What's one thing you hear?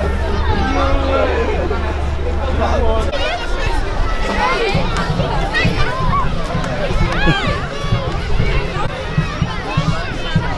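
A large crowd of children shouts and cheers loudly outdoors.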